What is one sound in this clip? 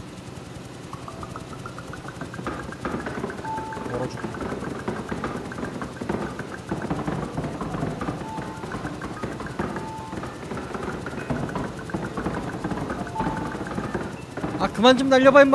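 Many small balls bounce and patter on a hard floor.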